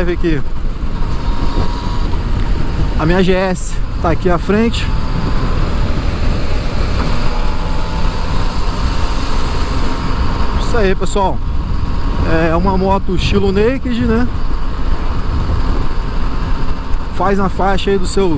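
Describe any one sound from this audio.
A motorcycle engine drones steadily and revs up and down between gear changes.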